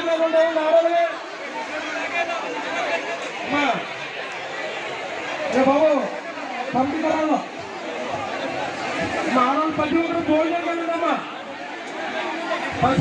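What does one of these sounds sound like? A large crowd chants and murmurs outdoors.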